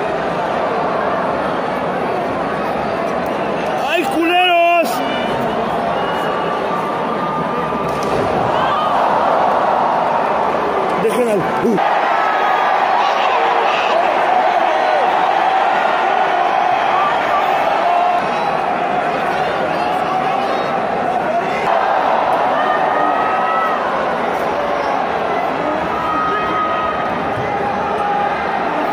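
A large crowd cheers and shouts throughout a big echoing arena.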